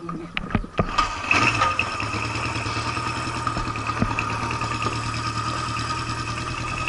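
A motorcycle engine revs up and holds a faster, louder idle.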